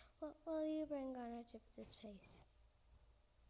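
A young girl speaks into a microphone with a lively, sing-song voice.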